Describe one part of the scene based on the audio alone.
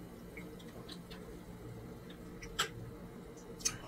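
Ice clinks in a glass.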